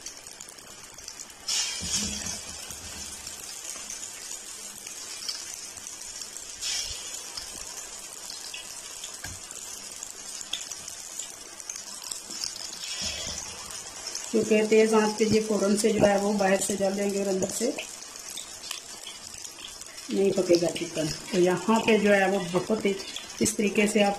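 Hot oil sizzles and bubbles steadily around frying food.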